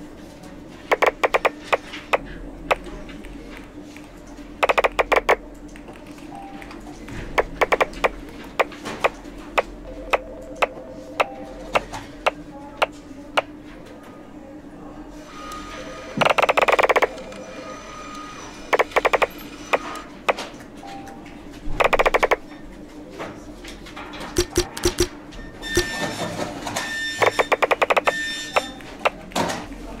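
Short bright game chimes click rapidly as papers pile up.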